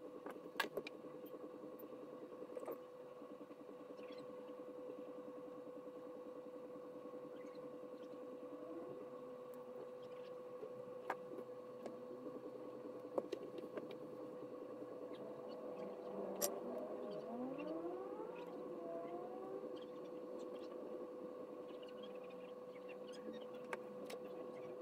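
Light clicks and taps come as a small circuit board is handled.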